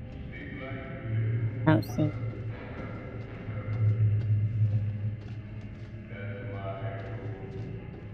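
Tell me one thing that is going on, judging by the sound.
Footsteps fall slowly on a hard floor.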